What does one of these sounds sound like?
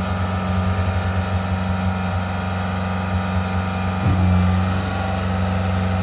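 A hydraulic loader arm whines as it lifts.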